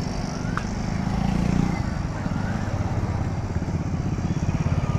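A motorcycle engine rumbles as it rides past close by.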